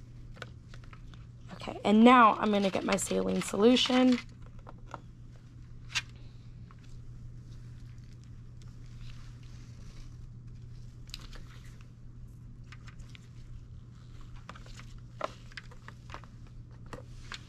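Plastic packaging crinkles and clicks under handling.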